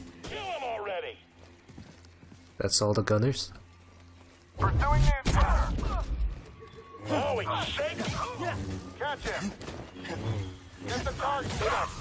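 A lightsaber hums and swishes through the air.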